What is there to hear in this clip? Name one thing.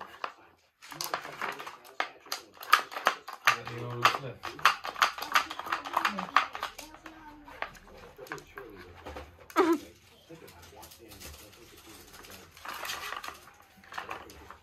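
A small dog noses a plastic puzzle toy, making it click and clatter on the floor.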